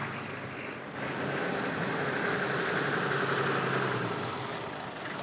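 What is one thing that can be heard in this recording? A truck engine rumbles close by.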